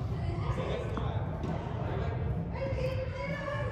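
A tennis ball bounces on a hard court in a large echoing hall.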